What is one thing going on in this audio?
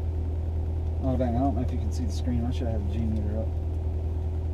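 A man speaks briefly inside the car.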